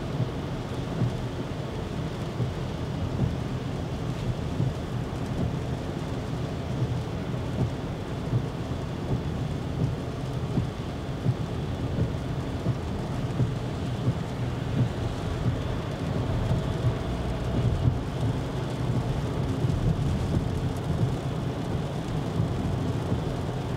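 A car engine hums low and steady from inside the cabin.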